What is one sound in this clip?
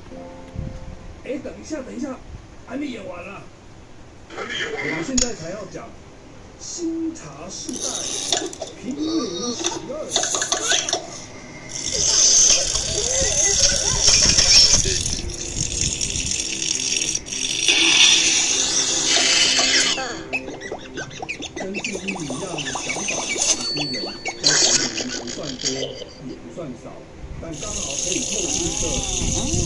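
High-pitched cartoon voices chatter from small device speakers.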